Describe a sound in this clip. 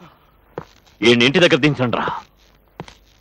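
A man speaks forcefully.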